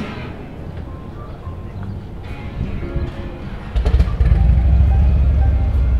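A pickup truck's engine idles and rumbles close by.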